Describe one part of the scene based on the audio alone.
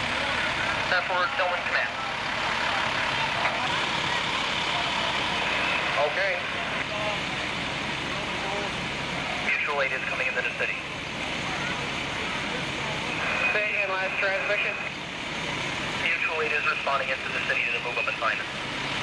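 Men talk loudly outdoors.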